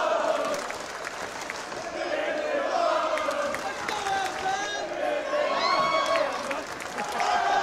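Fans clap their hands.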